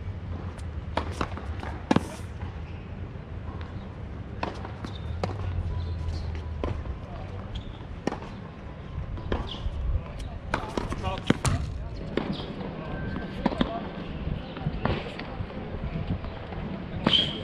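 A tennis ball is struck with a racket, again and again, close by.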